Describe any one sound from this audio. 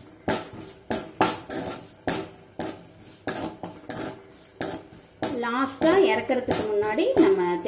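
Cumin seeds sizzle in hot oil.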